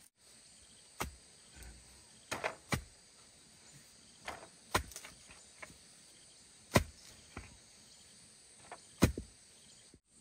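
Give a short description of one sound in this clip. A wooden pole thuds repeatedly into the ground.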